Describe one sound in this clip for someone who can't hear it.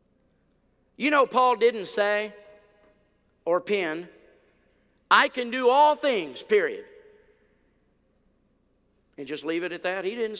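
An older man speaks with animation into a microphone, heard through a loudspeaker in a large hall.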